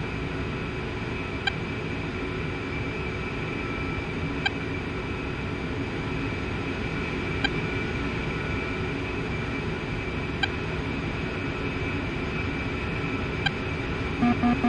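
A jet engine idles with a steady roar and whine.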